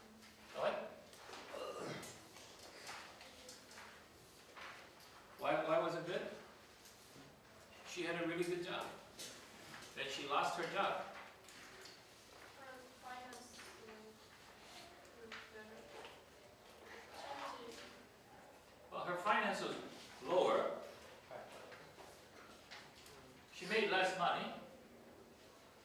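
An elderly man speaks calmly to a group.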